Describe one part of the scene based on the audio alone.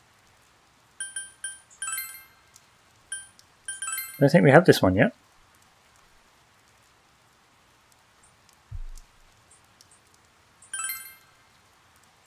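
Short electronic chimes beep as menu choices are made.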